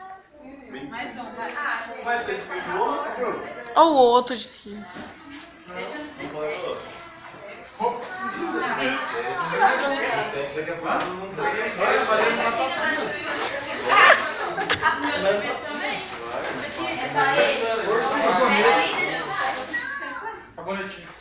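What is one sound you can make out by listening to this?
A group of young men and women talk, shout and laugh excitedly close by.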